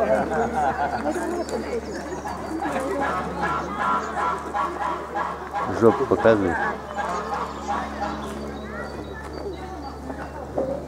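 A peacock rattles its fanned tail feathers close by.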